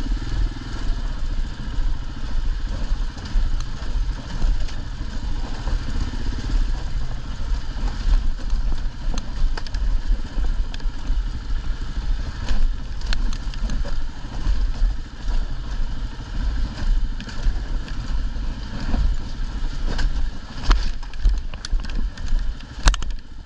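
Rocks crunch and clatter under motorcycle tyres.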